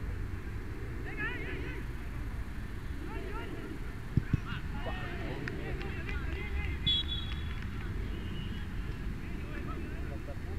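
Men's voices call out in the distance across an open field.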